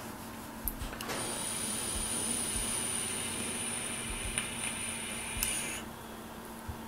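An elevator hums steadily as it moves between floors.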